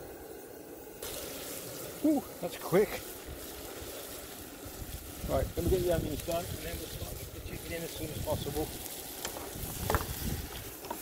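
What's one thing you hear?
Onions sizzle and crackle in a hot frying pan.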